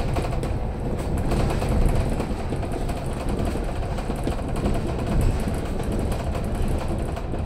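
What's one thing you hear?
Tyres hum and rattle on the road surface.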